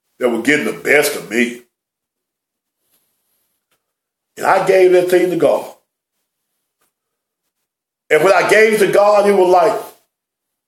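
A middle-aged man speaks calmly and emphatically close to a microphone, in short phrases with pauses.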